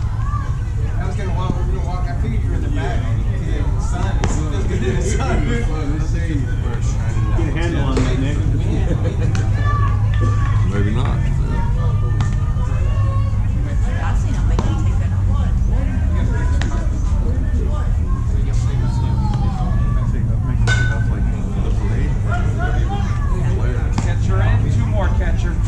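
Boys and men chatter and call out outdoors at a distance.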